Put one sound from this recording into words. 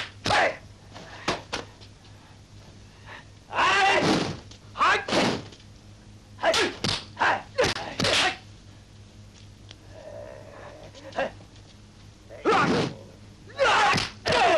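Punches and kicks land with sharp smacks.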